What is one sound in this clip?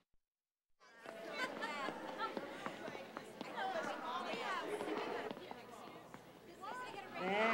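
A crowd of women chatters in a large room.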